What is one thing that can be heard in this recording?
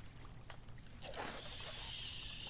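A fishing rod swishes through the air as a line is cast.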